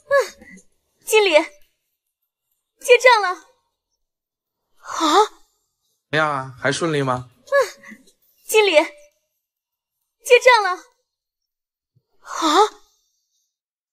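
A young woman speaks cheerfully, close by.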